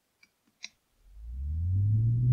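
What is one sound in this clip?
A fan starts up with a low hum that rises and grows louder.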